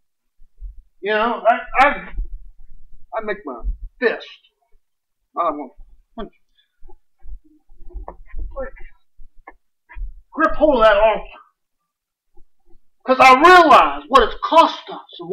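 A middle-aged man speaks with animation, pausing between phrases.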